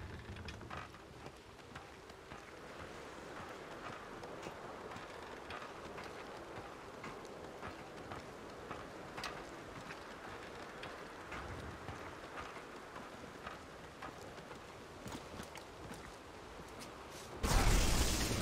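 Footsteps clatter on creaking wooden beams.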